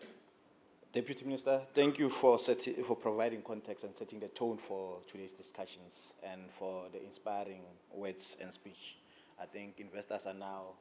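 A man speaks steadily into a microphone, heard through loudspeakers in a large room.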